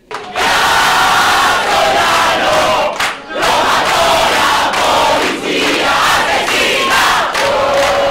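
A crowd of men and women chants loudly in unison close by.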